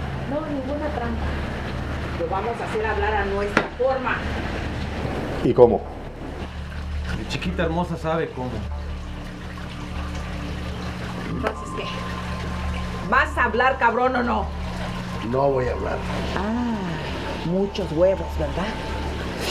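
A middle-aged woman speaks forcefully up close.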